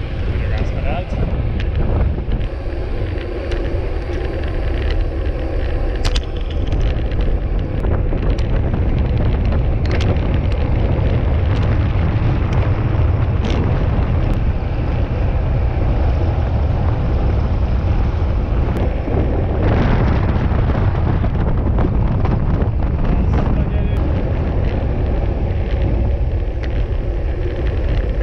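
Bicycle tyres hum on the asphalt.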